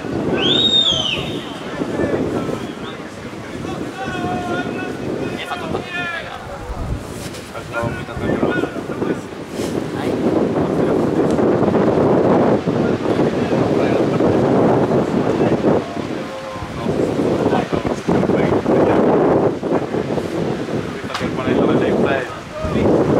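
Wind rumbles across an open outdoor space.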